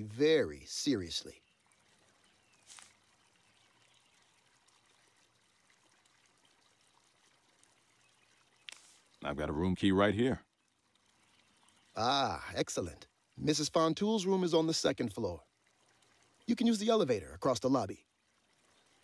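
A man speaks calmly and politely, close to a microphone.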